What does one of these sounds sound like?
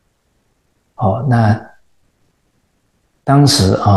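A middle-aged man speaks calmly into a microphone, close by.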